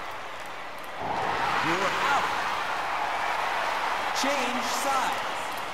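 A video game stadium crowd cheers.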